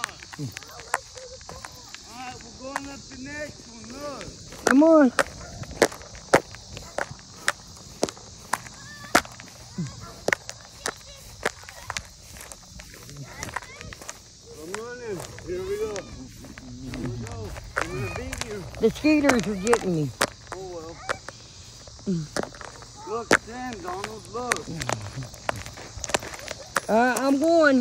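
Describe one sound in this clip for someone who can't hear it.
Footsteps thud quickly across grass.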